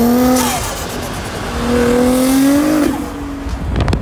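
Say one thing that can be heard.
A sports car engine revs loudly as the car drives past close by.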